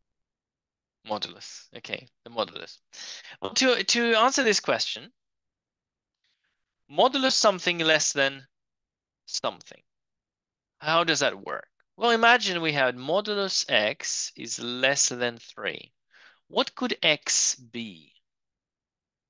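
A man explains calmly, heard close through a microphone.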